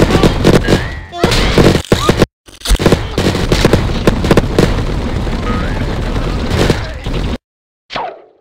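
Cartoon crashes and smashing thuds burst rapidly from a game.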